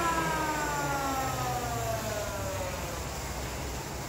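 An electric planer whines as it winds down and stops.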